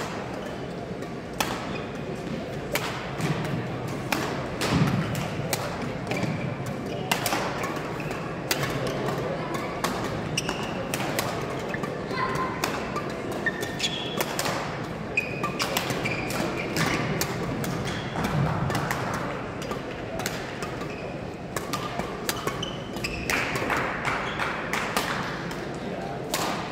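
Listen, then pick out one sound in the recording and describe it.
The hall sounds large and echoing.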